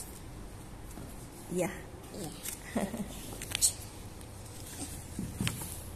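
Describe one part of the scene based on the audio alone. A book page turns with a soft papery rustle.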